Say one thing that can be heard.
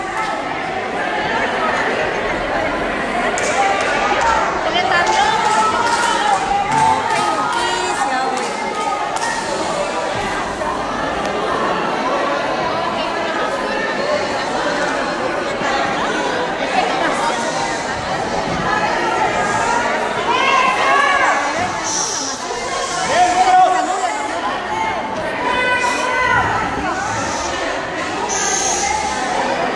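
A crowd of men and women talk and shout all at once in a large echoing hall.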